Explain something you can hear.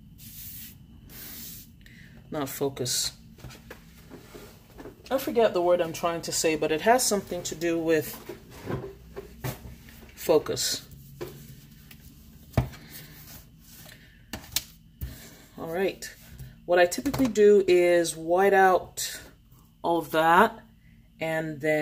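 Paper pages rustle and slide as a planner is handled.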